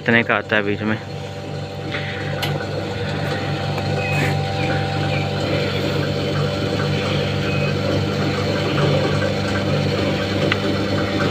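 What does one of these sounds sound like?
A fuel pump motor hums steadily.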